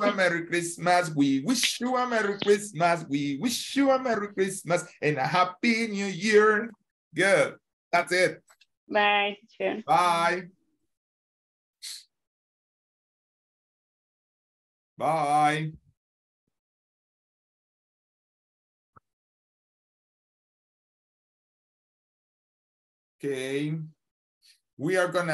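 A man speaks with animation through an online call.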